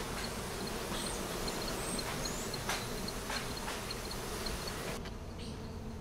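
A bee smoker puffs and hisses.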